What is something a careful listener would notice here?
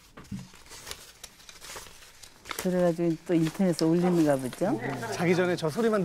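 Paper bills rustle as they are counted close to a microphone.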